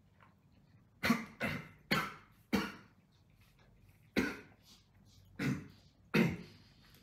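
A man coughs hard several times, close by.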